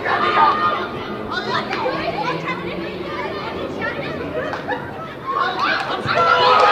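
Young players shout to each other across an outdoor pitch.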